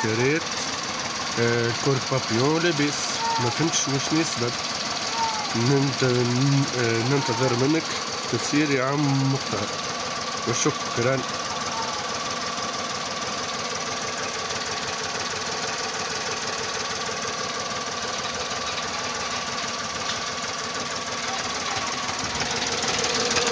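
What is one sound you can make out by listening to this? A three-cylinder petrol car engine idles.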